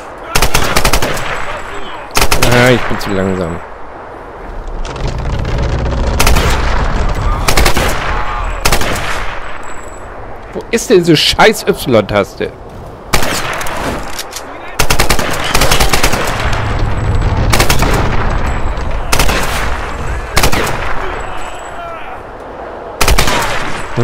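A rifle fires loud, sharp shots that echo.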